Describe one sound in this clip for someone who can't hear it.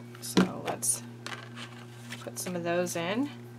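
Paper rustles as a card is handled.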